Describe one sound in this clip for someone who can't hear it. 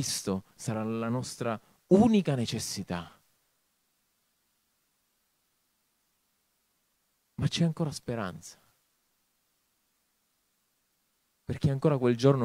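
A man speaks with animation into a microphone, with long pauses.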